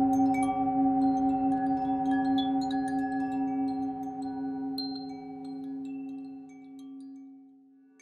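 A singing bowl rings with a steady, humming tone that slowly fades.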